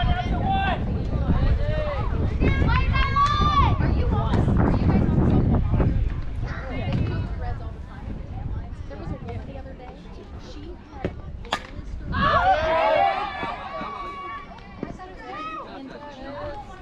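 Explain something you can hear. Players call out and cheer across an open field.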